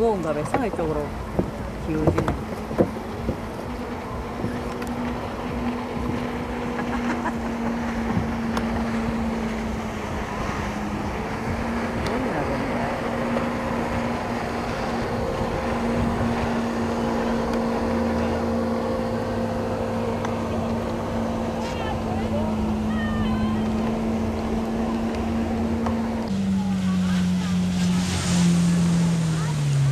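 Water sprays and splashes behind a speeding jet ski.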